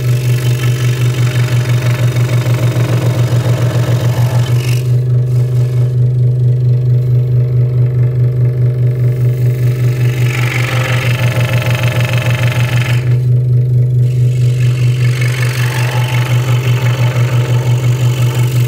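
A scroll saw hums and rattles steadily.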